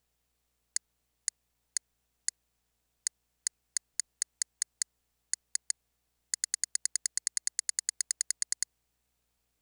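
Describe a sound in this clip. Short electronic menu clicks tick repeatedly, speeding up into a rapid run.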